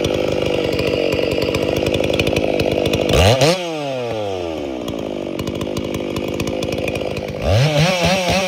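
A two-stroke chainsaw idles.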